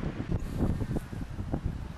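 A dog sniffs at the grass.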